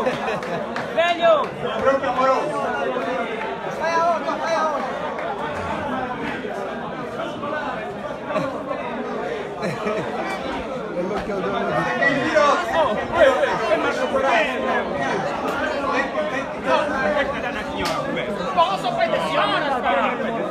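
A young man raps into a microphone through loudspeakers, echoing under a roof.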